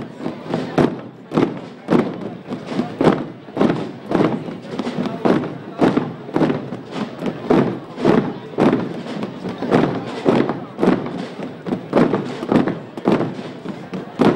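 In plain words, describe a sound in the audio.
Many footsteps tread in slow unison on a paved street.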